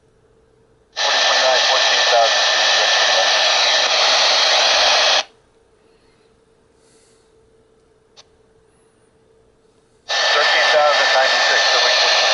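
A handheld airband radio hisses with static while its squelch is open.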